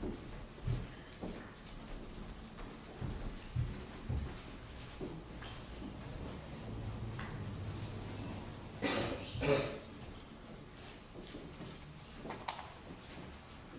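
Footsteps shuffle softly as several children walk.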